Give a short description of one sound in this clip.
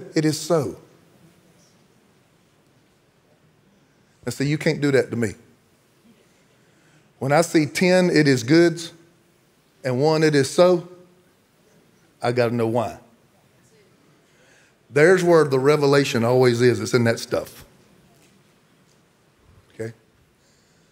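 A middle-aged man speaks with animation into a microphone, in bursts with pauses, in a large hall.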